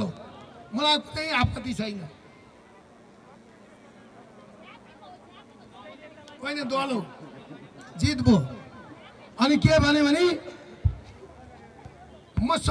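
A middle-aged man speaks loudly and forcefully into a microphone, heard through loudspeakers outdoors.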